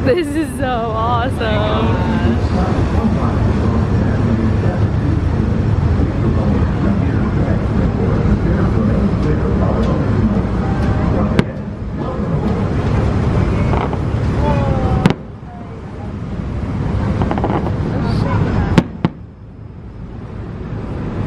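Fireworks burst with loud booms and crackles outdoors.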